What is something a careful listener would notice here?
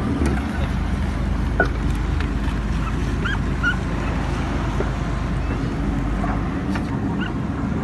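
Water splashes against a boat's side.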